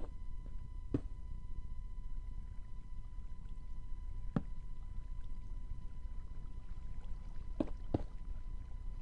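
Stone blocks are set down with short, dull knocks.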